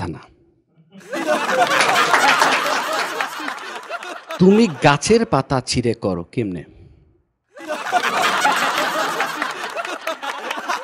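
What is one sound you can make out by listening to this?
An audience laughs and applauds.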